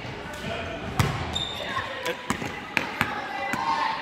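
A basketball bounces on a wooden floor in an echoing gym.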